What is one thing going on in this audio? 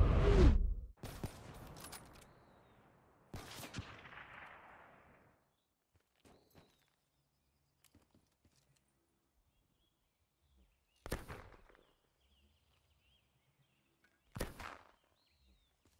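A sniper rifle fires loud single shots that echo away.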